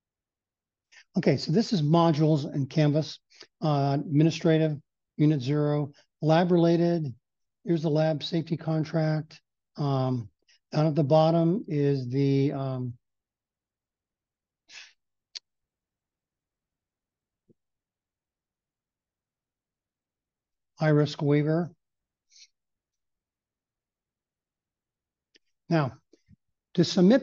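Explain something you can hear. An older man speaks calmly through a headset microphone on an online call.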